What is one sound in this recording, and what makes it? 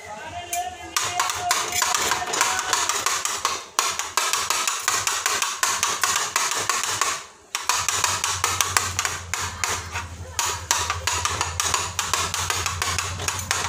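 A metal spatula scrapes and clatters against a pan.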